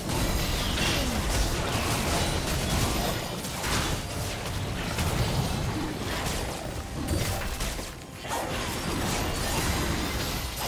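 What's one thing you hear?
Magic blasts and weapon hits clash rapidly in a video game battle.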